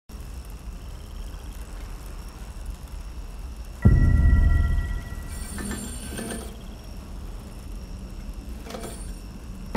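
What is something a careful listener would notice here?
A bicycle chain whirs as pedals turn.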